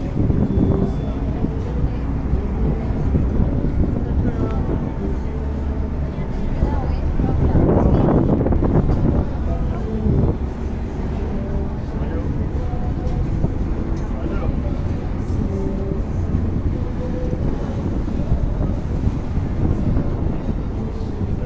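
A boat's engine drones low.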